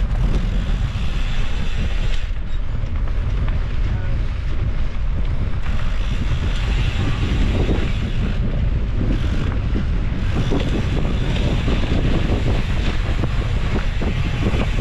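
Bicycle tyres crunch and rattle over dry dirt and gravel.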